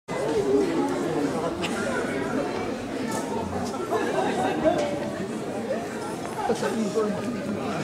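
Men talk casually at a distance.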